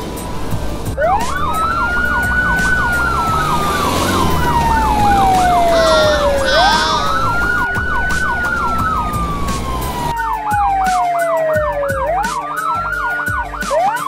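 A police siren wails and yelps.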